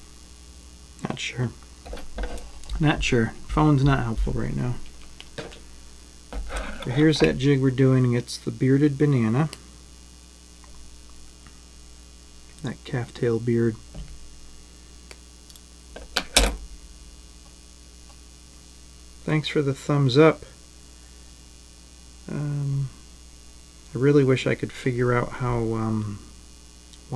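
A middle-aged man talks calmly into a microphone.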